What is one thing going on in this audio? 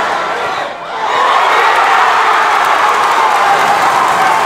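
A crowd cheers loudly in the stands.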